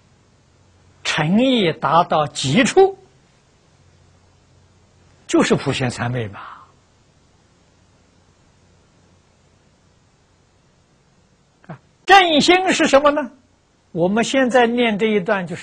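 An elderly man speaks calmly and slowly in short phrases, close to a microphone.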